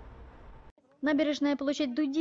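A middle-aged woman speaks calmly.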